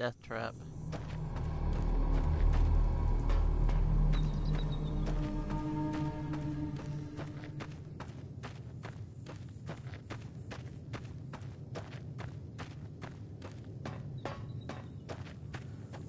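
Footsteps crunch quickly on gravel.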